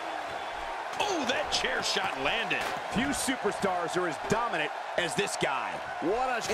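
Heavy thuds land on a wrestling mat.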